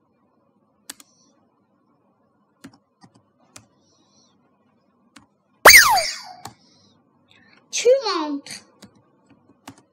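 Keys click sharply as someone types.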